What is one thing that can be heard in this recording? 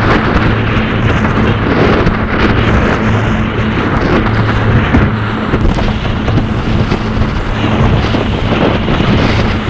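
Wind roars loudly outdoors over open water.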